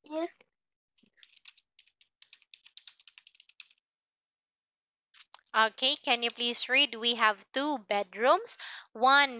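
A woman speaks clearly and slowly through an online call.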